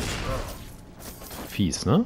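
Electricity crackles and sparks.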